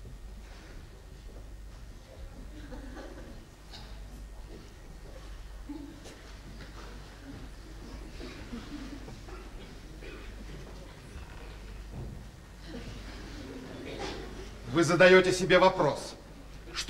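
A man speaks calmly on a stage, heard through a microphone.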